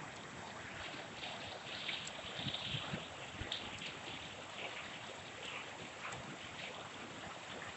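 A fast stream rushes and churns through bushes.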